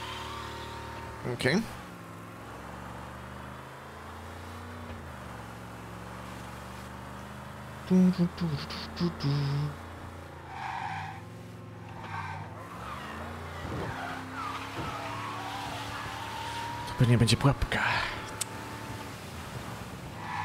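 A car engine hums steadily and revs up and down.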